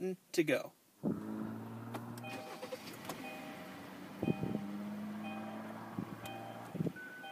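A car engine starts and idles with a steady hum.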